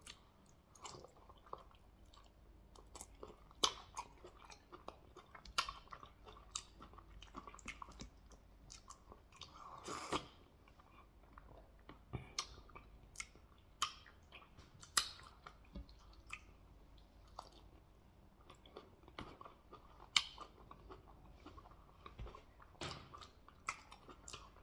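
A man smacks his lips and slurps.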